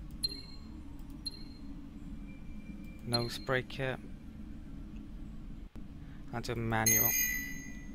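Short electronic interface chimes sound as menu buttons are clicked.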